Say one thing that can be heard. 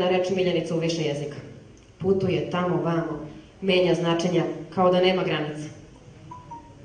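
A young woman sings into a microphone, heard through a loudspeaker.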